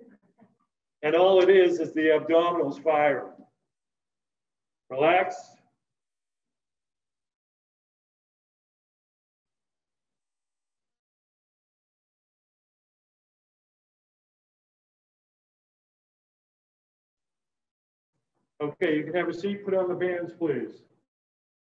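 A man speaks in short bursts through a microphone.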